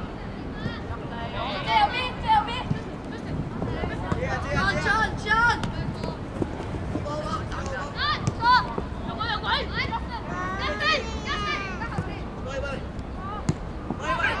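Young boys shout to each other across an open field.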